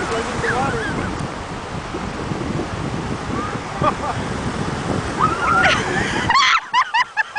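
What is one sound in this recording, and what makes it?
Waves wash and break steadily onto the shore.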